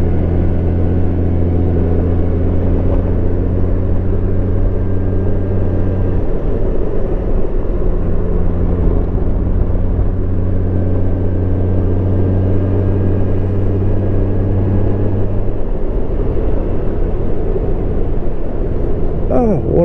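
A motorcycle engine hums steadily, its pitch shifting now and then.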